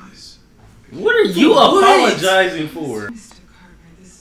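A young man shouts excitedly nearby.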